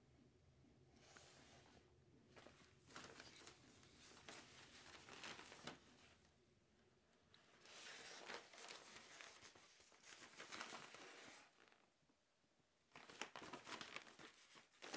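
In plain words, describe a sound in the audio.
A plastic-coated bag crinkles and rustles as hands handle and fold it.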